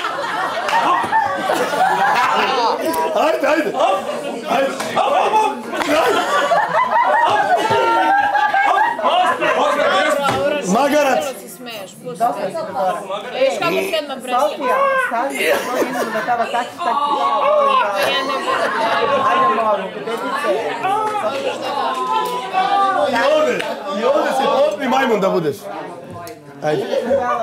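A crowd of young men and women talk over each other and laugh nearby.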